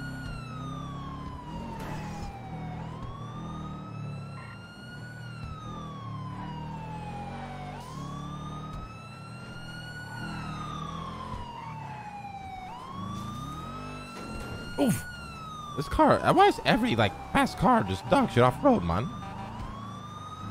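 A car engine revs up and drops in pitch as it shifts through gears.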